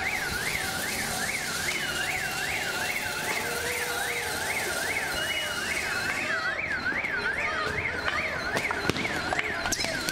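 A crowd of people shouts outdoors.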